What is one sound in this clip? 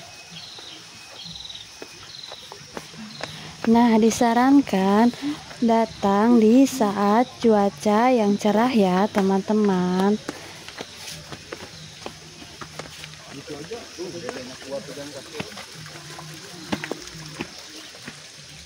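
Footsteps tread on stone steps.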